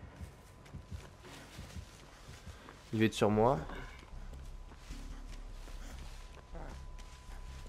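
Footsteps rustle through tall dry stalks.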